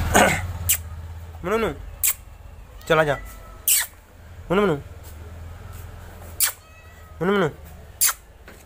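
A cat meows repeatedly nearby.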